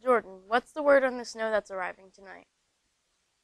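A young girl speaks clearly into a microphone.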